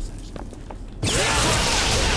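A magical power crackles and whooshes loudly.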